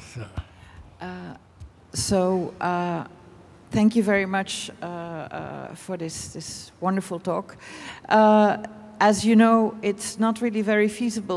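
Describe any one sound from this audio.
A woman speaks calmly into a microphone, heard over loudspeakers in a large hall.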